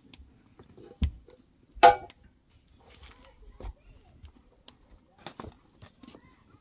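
Metal dishes and utensils clink and clatter.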